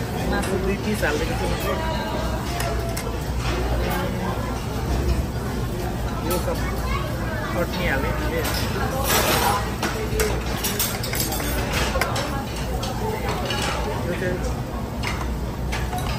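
Chopsticks clink against plates.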